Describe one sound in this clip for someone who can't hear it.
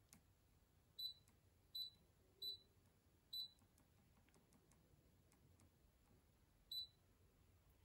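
A machine gives short high beeps as buttons are pressed.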